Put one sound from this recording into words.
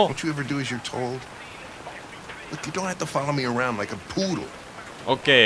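A middle-aged man speaks in a low, gruff voice.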